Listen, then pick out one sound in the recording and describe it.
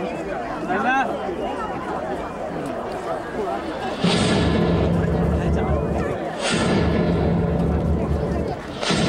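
Music plays through loudspeakers.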